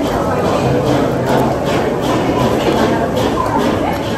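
A young woman chews and smacks her lips close by.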